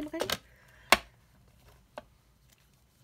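A metal hand tool snaps shut with a sharp click.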